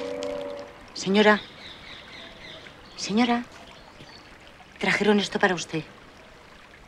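A woman speaks softly in short phrases nearby.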